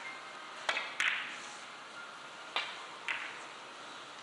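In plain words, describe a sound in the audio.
Billiard balls click sharply against each other and the cushions.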